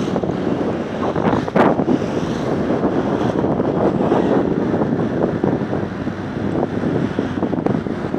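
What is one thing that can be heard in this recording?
Wind rushes over the microphone while moving along a road.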